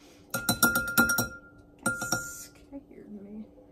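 A spice shaker rattles as a man shakes it.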